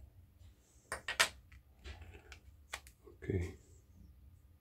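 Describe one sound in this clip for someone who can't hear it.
A phone's case snaps into place with a sharp click.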